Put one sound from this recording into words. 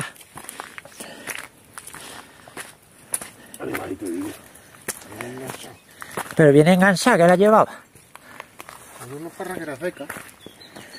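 Footsteps crunch on loose gravel.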